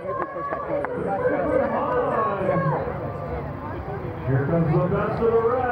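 Several adult voices chatter nearby outdoors.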